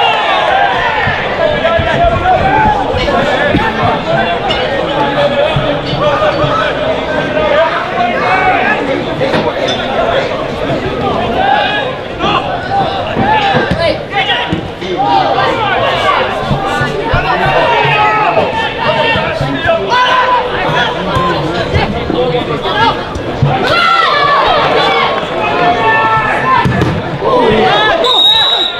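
A large outdoor crowd of spectators cheers and chants loudly.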